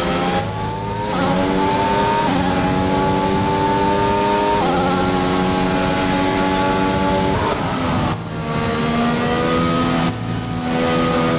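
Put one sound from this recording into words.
A racing car engine screams at high revs, rising through the gears and dropping as it shifts down.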